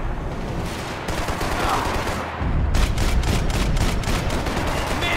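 A pistol fires several sharp shots in quick succession.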